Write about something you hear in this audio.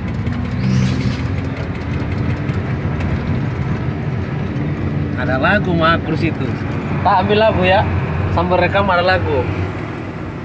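An engine rumbles steadily inside a moving vehicle.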